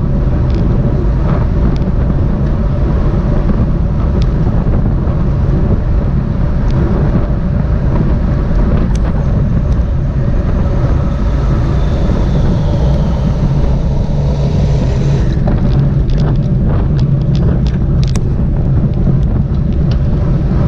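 Wind rumbles loudly past the microphone.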